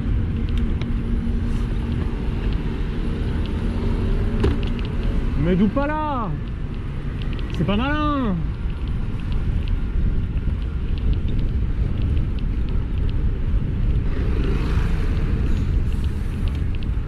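Wind rumbles steadily over a moving bicycle outdoors.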